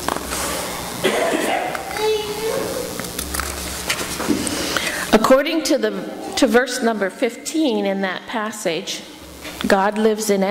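An older woman speaks calmly into a microphone in an echoing hall.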